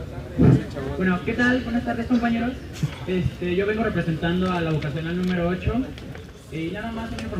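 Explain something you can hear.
A man speaks loudly to a crowd, close by.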